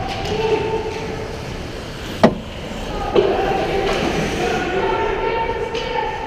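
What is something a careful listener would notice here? Skates scrape across ice nearby.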